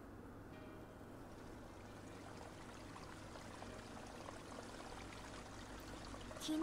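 Water splashes steadily in a fountain.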